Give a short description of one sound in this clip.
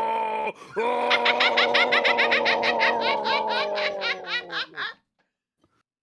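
A monster lets out a long, loud, shrieking scream.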